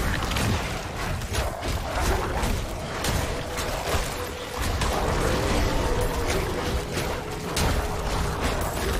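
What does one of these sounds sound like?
Weapons strike monsters with heavy thuds.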